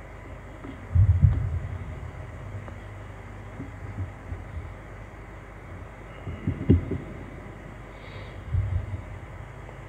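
A book thumps and rustles close to a microphone.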